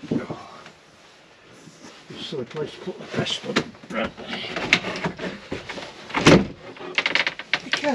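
Objects knock and rattle close by.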